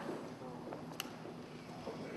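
A button clicks on a small robot.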